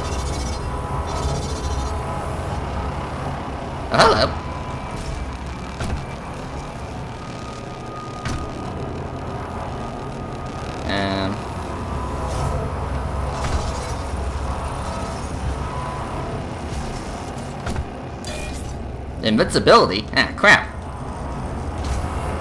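A low mechanical hum drones steadily throughout.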